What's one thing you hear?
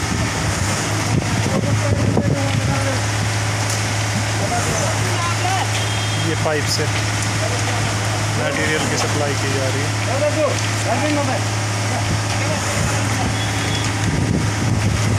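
A concrete pump engine drones steadily nearby.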